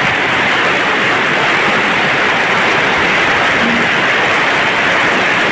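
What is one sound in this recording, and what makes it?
Rainwater streams off a roof edge and splashes onto the ground.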